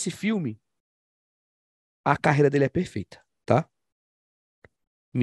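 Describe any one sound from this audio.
A man speaks with animation through a microphone in an online call.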